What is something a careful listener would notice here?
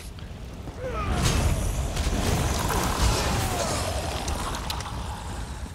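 Sharp magical blasts and weapon hits crash against a creature.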